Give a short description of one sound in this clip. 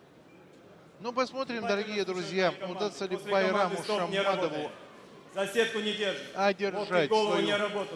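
A man announces loudly through a microphone in a large echoing hall.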